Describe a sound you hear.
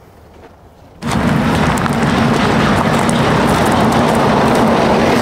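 Footsteps of a group shuffle along a road.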